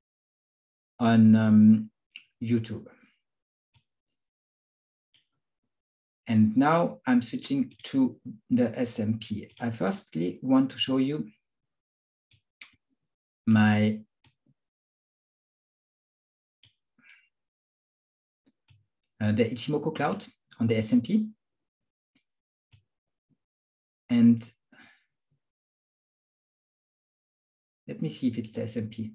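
An elderly man speaks calmly into a close microphone, in short bursts with pauses.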